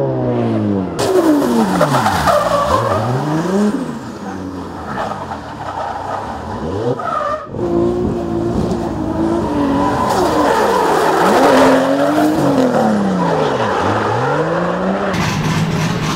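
Tyres screech on asphalt as a car drifts.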